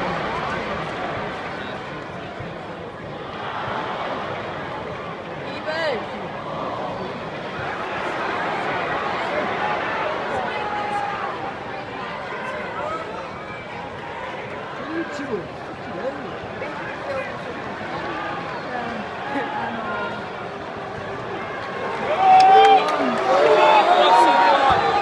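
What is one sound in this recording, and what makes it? A large stadium crowd murmurs and chants all around.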